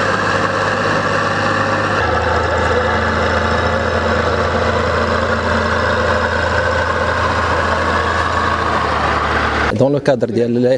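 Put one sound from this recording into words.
A heavy construction machine's diesel engine rumbles steadily.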